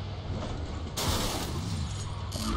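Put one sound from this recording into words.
A car crashes with a loud smash.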